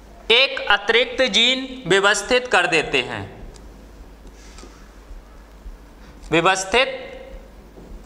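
A man speaks clearly and steadily, close by.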